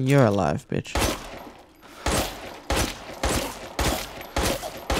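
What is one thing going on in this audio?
Gunshots fire in quick succession.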